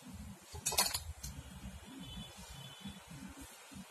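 Pieces of soft fudge are moved on a metal plate with a light clink.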